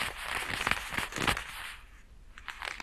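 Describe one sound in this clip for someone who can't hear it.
Leather gloves rub and crinkle close by.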